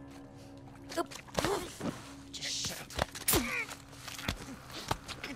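A man gasps and chokes in a close struggle.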